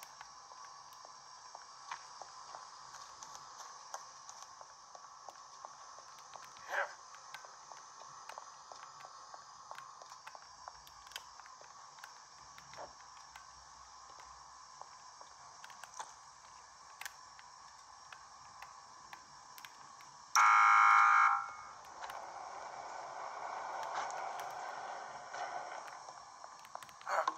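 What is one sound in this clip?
A handheld game console plays quiet game sounds through its small speaker.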